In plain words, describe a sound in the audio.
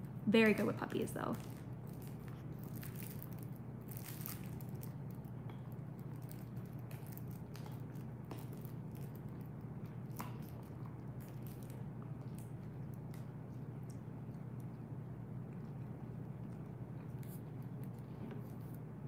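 A dog chews and gnaws on a soft toy close by.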